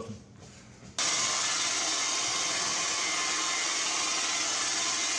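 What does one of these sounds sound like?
An electric polisher whirs steadily against glass.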